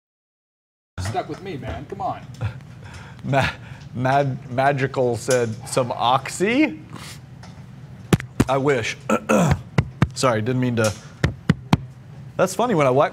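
A middle-aged man talks with animation into a close microphone.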